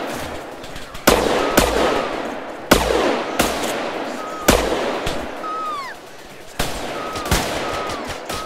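Gunshots ring out in loud, sharp bursts with echoing tails.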